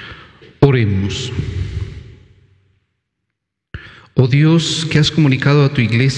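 A middle-aged man speaks calmly into a microphone in a room with some echo.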